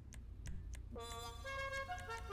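A car horn plays a short musical tune.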